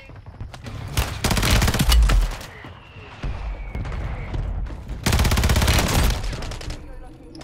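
A rifle fires rapid loud bursts.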